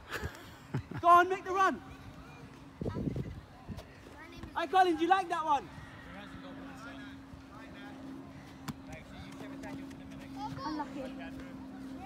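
Children shout on a playing field outdoors.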